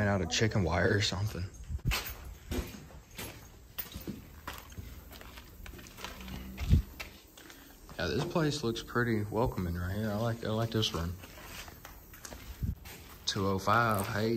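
Footsteps crunch over debris and broken plaster.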